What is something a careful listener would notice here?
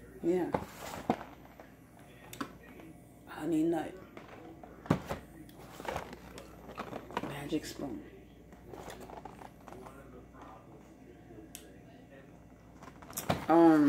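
A cereal box rustles as it is handled.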